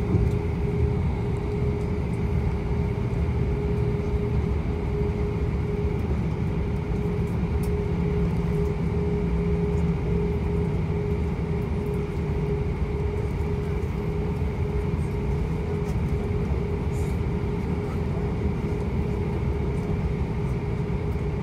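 An aircraft rumbles low as it rolls over the ground.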